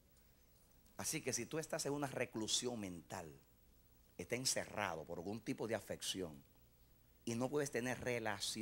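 A man preaches with animation through a microphone and loudspeakers in a large room.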